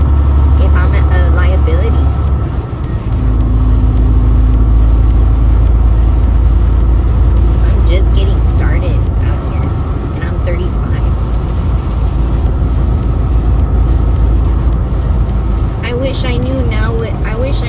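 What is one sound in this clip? A young woman speaks with animation close by, from the driver's seat.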